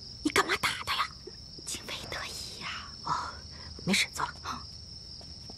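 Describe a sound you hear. A young woman speaks softly and anxiously.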